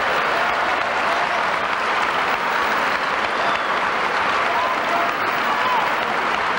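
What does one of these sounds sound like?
A crowd cheers and whistles.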